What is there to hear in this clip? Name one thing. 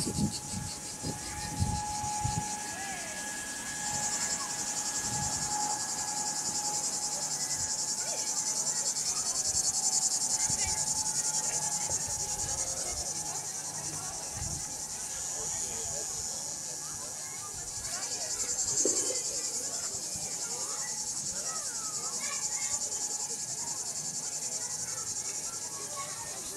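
Children and adults chatter and call out at a distance outdoors.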